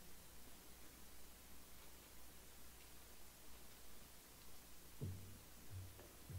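Footsteps thud softly across a hard floor in a large, quiet hall.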